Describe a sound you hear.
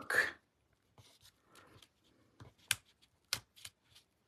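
A pen dabs and taps lightly on paper.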